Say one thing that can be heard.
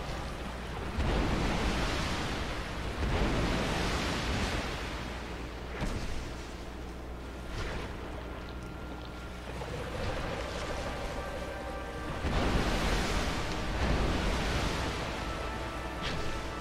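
A huge creature roars and crashes through water.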